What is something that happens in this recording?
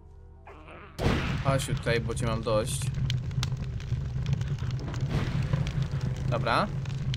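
Flames burst with a roaring whoosh and crackle.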